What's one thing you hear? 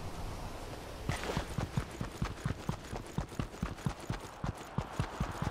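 Quick footsteps patter on grass in a video game.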